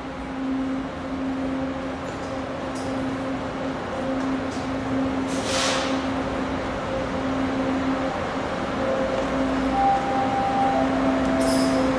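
Footsteps hurry down stairs and along a hard floor.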